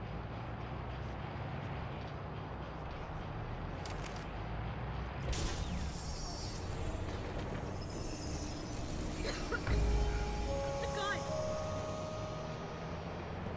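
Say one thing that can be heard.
Traffic hums steadily nearby.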